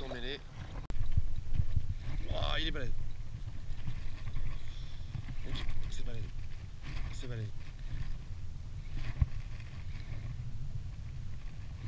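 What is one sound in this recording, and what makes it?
A fishing reel clicks as its handle is cranked.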